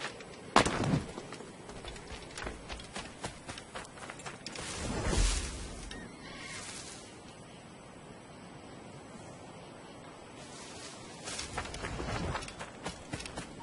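Footsteps rustle through leaves and grass.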